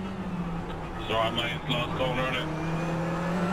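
A man talks briefly into a microphone.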